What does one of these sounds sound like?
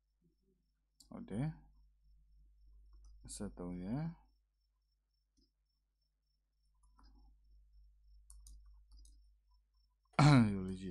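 A young man speaks calmly and close to a microphone, in short phrases with pauses.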